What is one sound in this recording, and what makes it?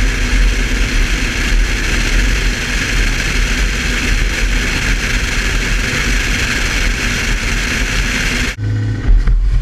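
Wind and road noise rush past a moving car.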